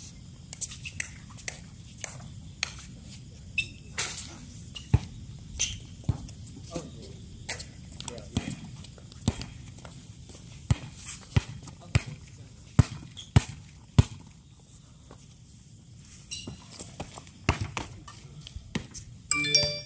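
A volleyball is struck with sharp slaps, again and again.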